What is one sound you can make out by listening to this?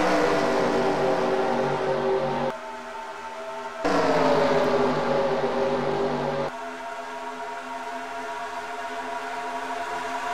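Racing car engines roar at high revs.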